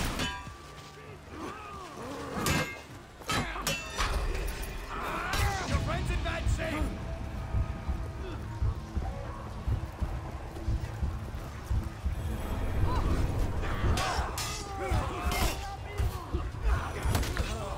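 Swords clash and clang in a melee fight.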